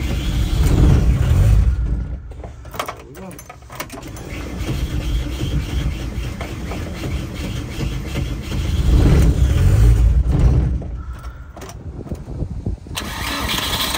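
Keys jingle on a key ring.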